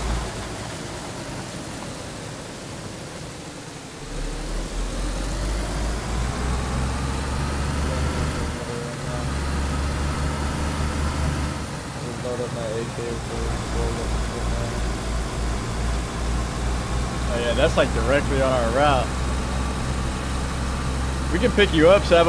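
A car engine hums and revs as the car drives along a road.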